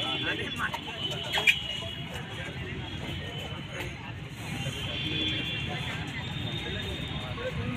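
A crowd of onlookers chatters and calls out outdoors.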